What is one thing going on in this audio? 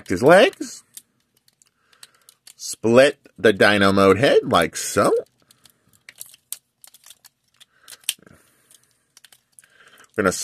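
Plastic toy parts click and creak as they are twisted.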